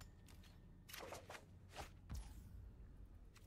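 Short game sound effects chime as a card is picked.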